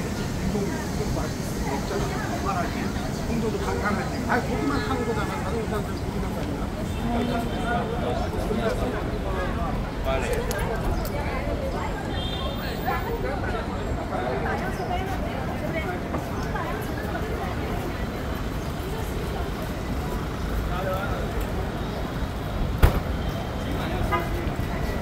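A crowd of people talks and murmurs nearby, echoing under a large open roof.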